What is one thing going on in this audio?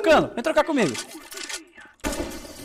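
Rapid gunshots fire in a game.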